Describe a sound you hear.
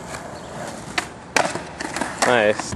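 A skateboard lands and clacks hard on concrete.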